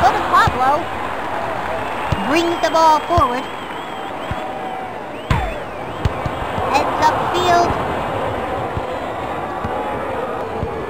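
A crowd cheers steadily throughout.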